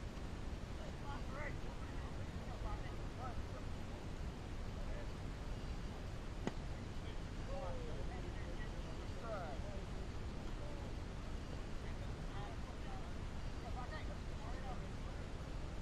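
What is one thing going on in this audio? Distant men shout and call out across an open field.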